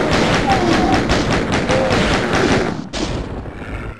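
A chaingun fires in rapid, loud bursts.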